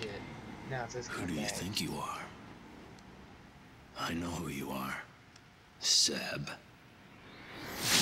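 A man speaks slowly and menacingly, close by.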